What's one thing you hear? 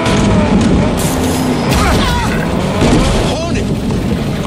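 A car thuds hard into a horse.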